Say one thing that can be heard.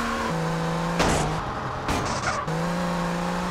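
A car lands with heavy thuds after bouncing over a kerb.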